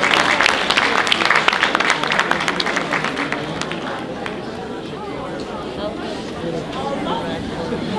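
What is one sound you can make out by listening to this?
Men talk to each other nearby in a large echoing hall.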